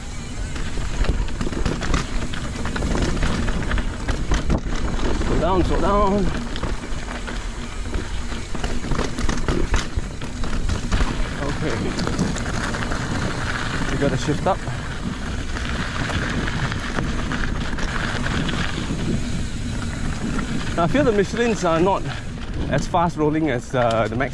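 Bicycle tyres roll and crunch over a dirt and gravel trail.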